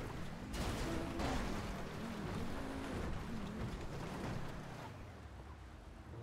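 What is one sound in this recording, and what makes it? A sports car engine revs and roars as the car drives off.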